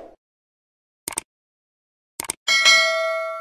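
A click sounds.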